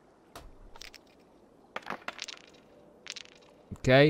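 Dice clatter as they are tossed onto a table.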